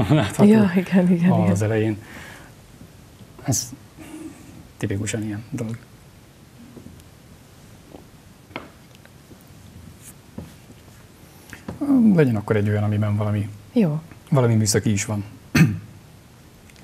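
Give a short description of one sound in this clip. A man speaks calmly into a close microphone, in short phrases.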